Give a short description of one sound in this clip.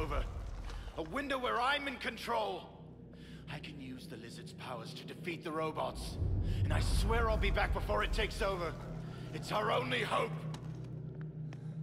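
A man speaks intensely, close up.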